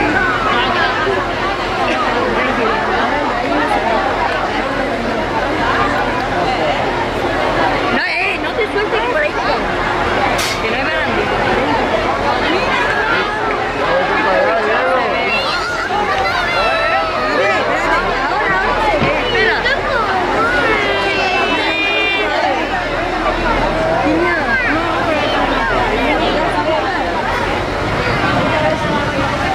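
A crowd of adults and children chatters loudly close by, outdoors.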